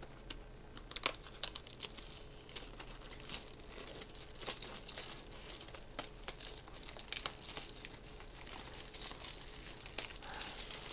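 Plastic wrapping on a box crinkles and rustles as hands turn it.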